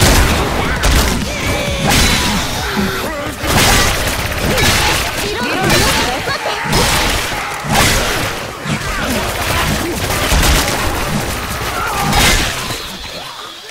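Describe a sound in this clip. An axe hacks into bodies with wet thuds.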